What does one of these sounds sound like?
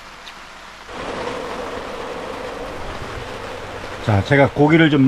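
Pork sizzles in a frying pan.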